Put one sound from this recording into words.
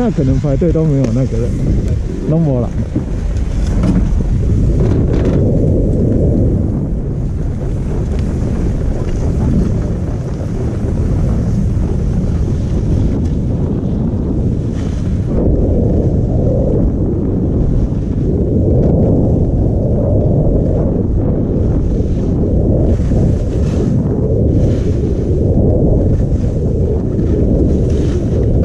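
Wind buffets a microphone throughout, outdoors.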